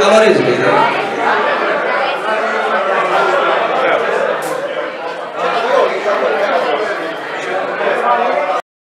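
A man sings into a microphone through loudspeakers.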